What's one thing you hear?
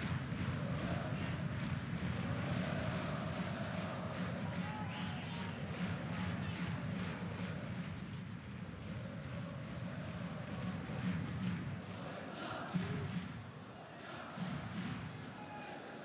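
A stadium crowd murmurs and chants steadily in a large open space.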